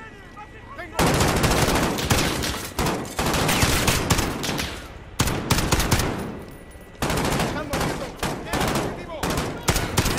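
Rifles fire in rapid bursts close by, echoing indoors.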